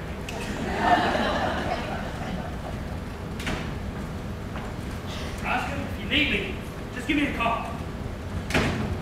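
A man speaks loudly in a large room.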